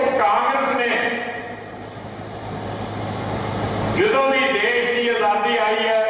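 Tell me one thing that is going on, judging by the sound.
An elderly man speaks calmly into a microphone over a loudspeaker.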